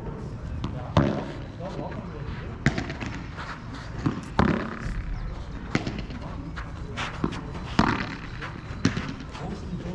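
Padel rackets strike a ball with sharp pops, outdoors.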